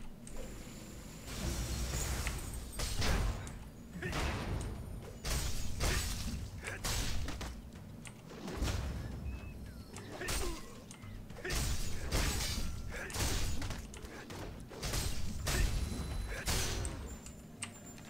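Sword strikes and whooshes of combat sound in quick bursts.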